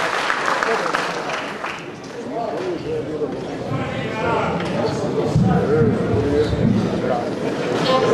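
A man talks on a stage in a large echoing hall.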